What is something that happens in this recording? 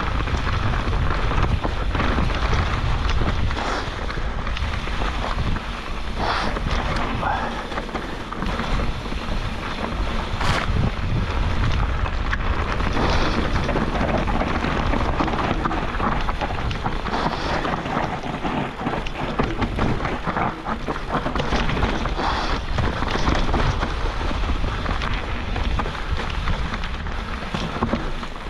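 Bicycle tyres crunch and rustle through dry leaves on a rough trail.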